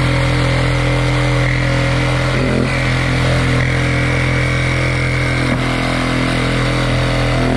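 A reciprocating saw buzzes loudly as it cuts through foam board.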